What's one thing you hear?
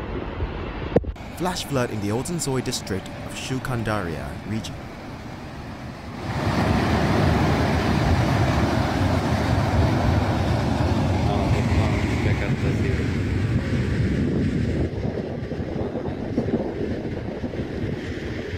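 A muddy flood roars and rumbles loudly as it churns down a valley outdoors.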